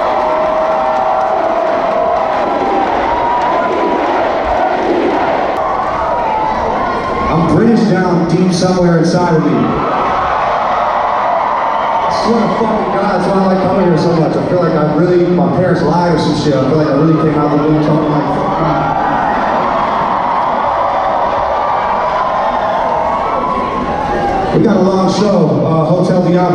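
A live band plays loud music in a large echoing hall.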